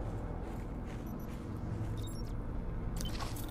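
A handheld detector beeps in short high blips.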